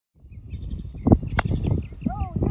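A golf club strikes a ball off the tee with a sharp click.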